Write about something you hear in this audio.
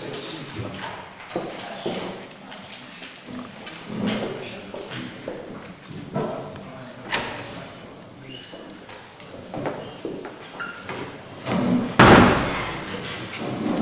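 Several people murmur and talk in the background of a hall.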